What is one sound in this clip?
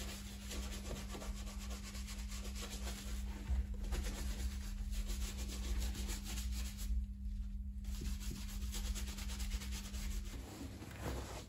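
A brush scrubs quickly back and forth on leather.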